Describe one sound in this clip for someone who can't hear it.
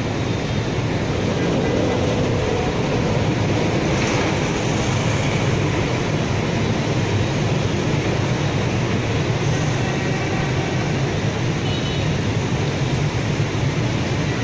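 Heavy city traffic roars steadily.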